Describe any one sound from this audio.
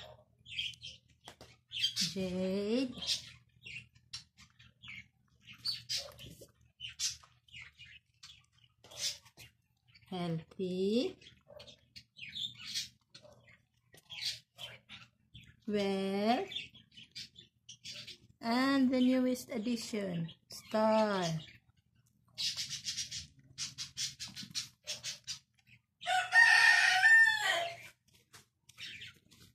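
Cats chew and lap up food with wet smacking sounds.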